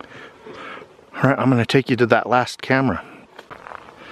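Footsteps crunch on a dirt trail outdoors.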